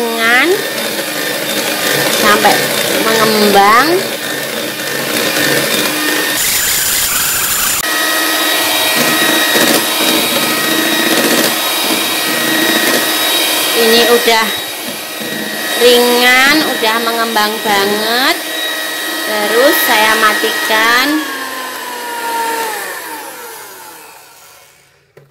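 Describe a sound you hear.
An electric hand mixer whirs steadily, beating a mixture in a bowl.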